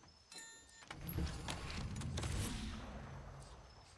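A metal case clunks open with a short rumble.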